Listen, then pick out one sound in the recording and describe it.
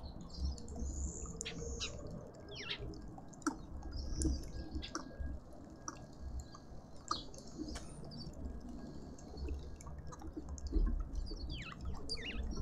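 Birds chirp and call outdoors.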